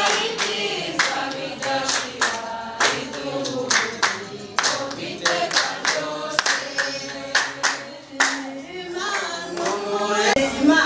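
Several people clap their hands in rhythm.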